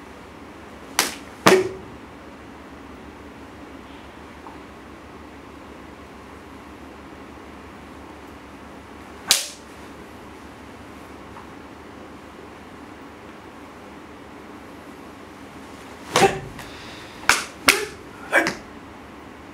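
A man claps his hands sharply.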